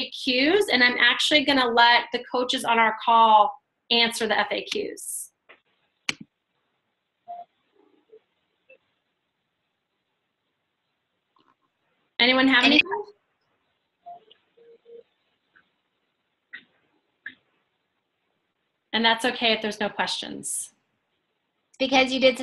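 A woman speaks with animation over an online call, with long pauses.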